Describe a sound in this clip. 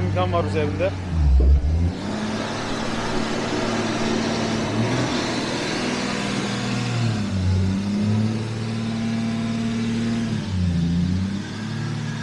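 A car engine revs up briefly a few times and drops back.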